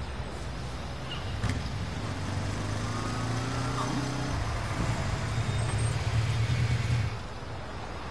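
Car engines rumble as traffic drives past close by.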